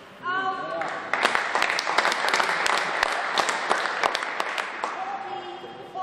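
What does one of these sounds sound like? A crowd of spectators applauds in a large hall.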